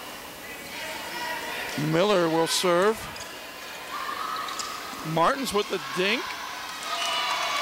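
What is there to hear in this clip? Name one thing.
A volleyball is served and struck with sharp slaps.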